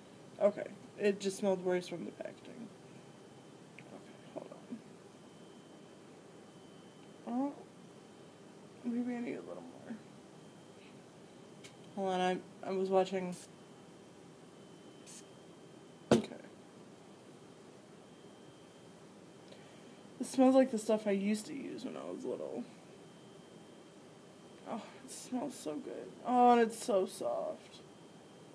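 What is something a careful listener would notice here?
A woman talks casually close to the microphone, in short bursts.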